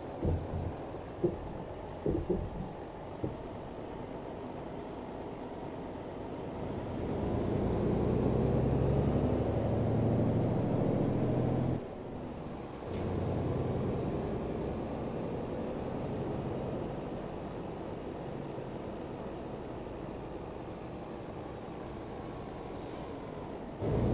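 A truck's diesel engine rumbles steadily, rising and falling as it speeds up and changes gear.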